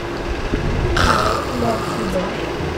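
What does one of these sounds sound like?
A young man snores loudly in jest.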